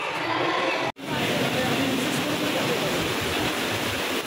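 Children kick and splash water loudly in an echoing indoor pool.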